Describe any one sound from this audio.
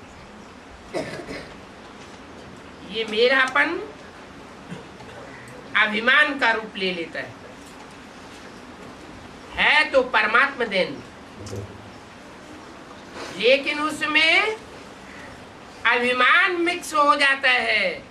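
An elderly man speaks calmly in short phrases with pauses, close to a microphone.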